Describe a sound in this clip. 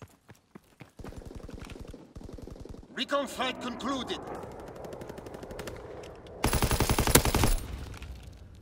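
A machine gun fires in rapid bursts at close range.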